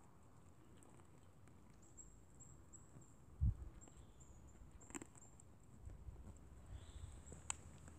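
Deer nibble and chew food from the ground.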